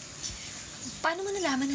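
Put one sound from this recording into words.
A young woman speaks briefly in a questioning tone.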